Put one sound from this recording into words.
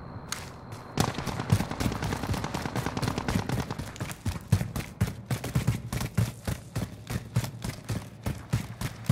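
Quick footsteps run across a hard stone floor.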